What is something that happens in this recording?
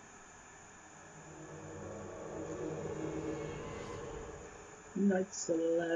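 A shimmering magical hum swells up, then fades.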